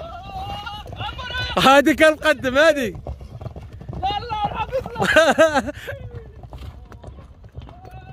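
Horses' hooves thud on dirt as they gallop past.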